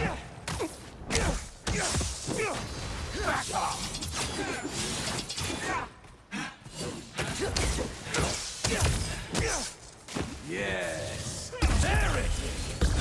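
Punches and kicks land with sharp, heavy thuds.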